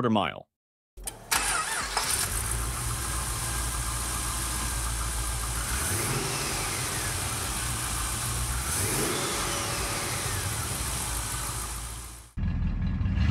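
A car engine idles close by with a steady hum.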